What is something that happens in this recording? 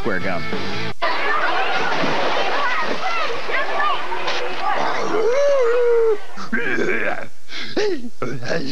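A crowd of children shouts and laughs outdoors at a pool.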